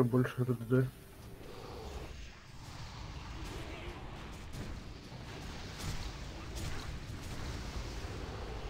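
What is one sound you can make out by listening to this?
Magic spells whoosh and crackle in a fast battle.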